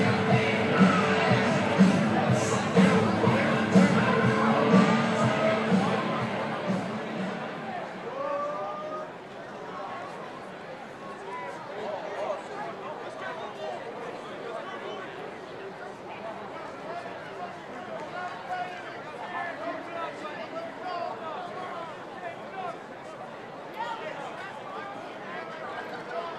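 A large stadium crowd cheers loudly, then settles into a busy murmur.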